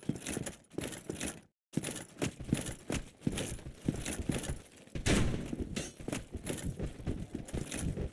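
Armored footsteps clank quickly on stone.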